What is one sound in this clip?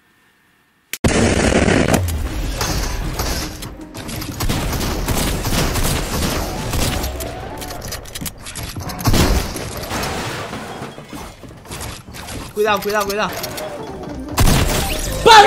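Gunshots and game effects crack and whoosh from a video game.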